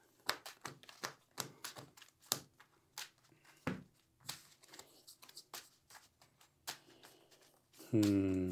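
Playing cards riffle and flick as hands shuffle a deck.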